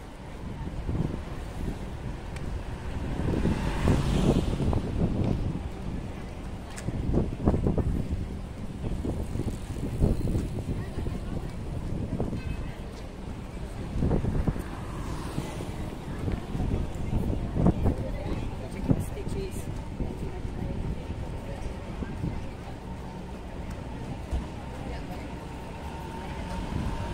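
Light traffic hums along an open city street outdoors.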